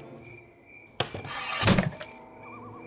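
A clay plate clatters onto a wooden crate.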